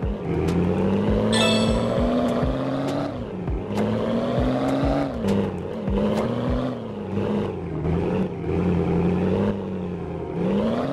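A truck engine roars and revs up and down.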